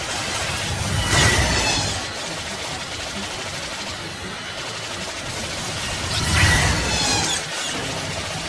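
Explosions boom with a low rumble.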